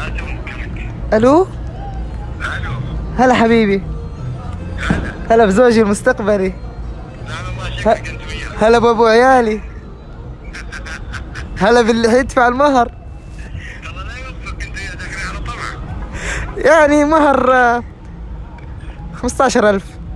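A man's voice comes through a phone speaker.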